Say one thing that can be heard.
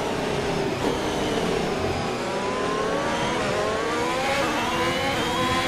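A racing car engine screams at high revs and rises in pitch as the car speeds up.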